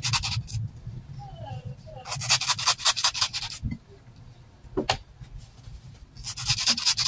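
A knife scrapes as it peels the skin off a fruit in quick bursts.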